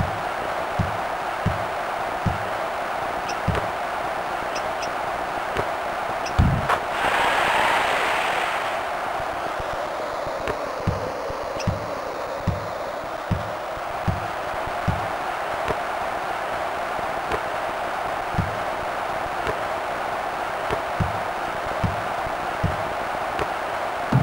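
A large crowd murmurs steadily.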